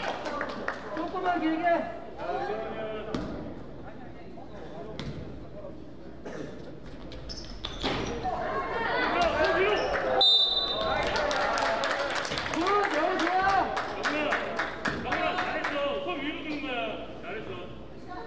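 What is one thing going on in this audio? Young players shout and call out to each other in an echoing gym.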